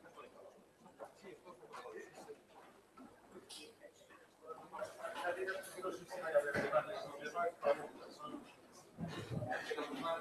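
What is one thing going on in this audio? People talk quietly nearby.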